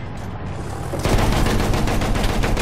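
An explosion booms heavily.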